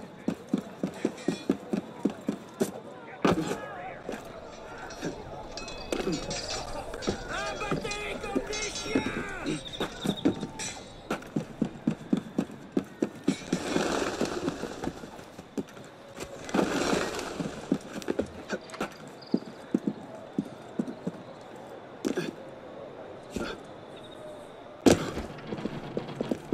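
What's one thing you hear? Footsteps patter quickly across a tiled roof.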